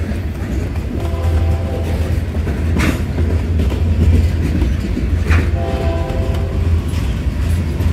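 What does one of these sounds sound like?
Steel wheels squeal briefly on the rails.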